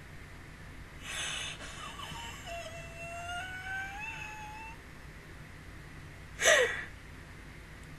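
A woman laughs loudly and close into a microphone.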